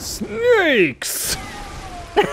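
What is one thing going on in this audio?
A heavy blade whooshes through the air and strikes.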